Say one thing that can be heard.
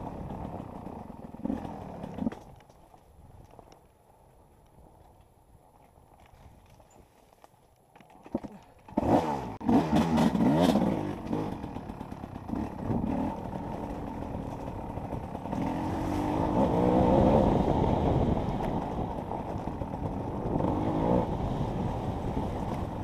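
A dirt bike engine revs up and down close by, dropping quiet for a few seconds, then roaring loudly.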